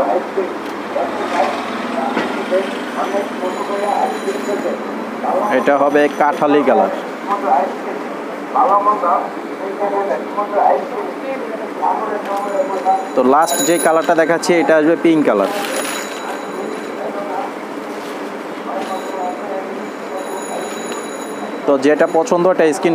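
A young man speaks with animation into a clip-on microphone, close by.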